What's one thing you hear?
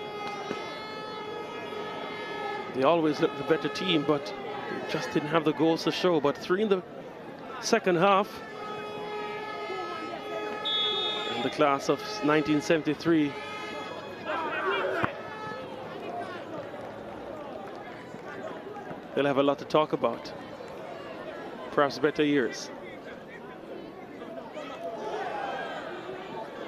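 A crowd of spectators murmurs in the distance outdoors.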